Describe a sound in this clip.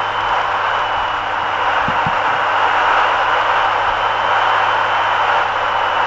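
A truck rushes past in the other direction.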